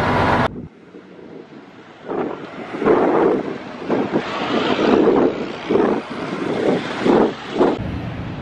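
A vehicle engine rumbles as a van drives slowly past.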